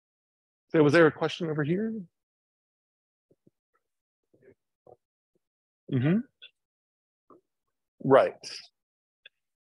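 A man speaks in short bursts through a microphone, with pauses between.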